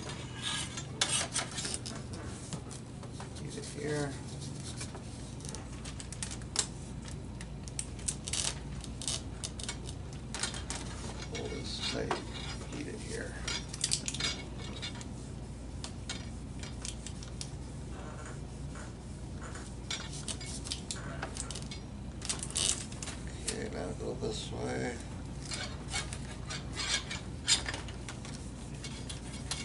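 Thin plastic crackles and clicks as it is bent and handled.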